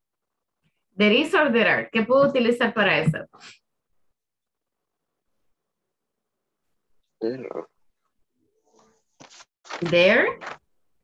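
A young woman speaks clearly over an online call, in short phrases with pauses.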